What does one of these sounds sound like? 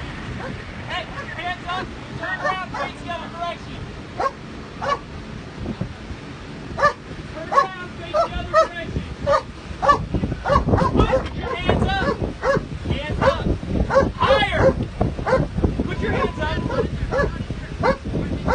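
Several men talk with animation close by, outdoors.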